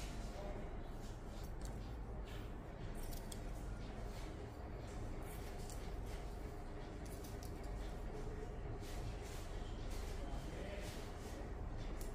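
Scissors snip through hair in quick clicks.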